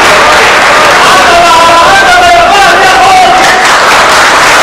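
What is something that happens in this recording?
A man sings loudly in a large hall.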